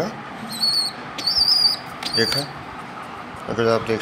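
A bird's wings flap briefly.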